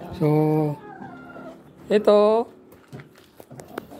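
Chickens cluck and squawk close by.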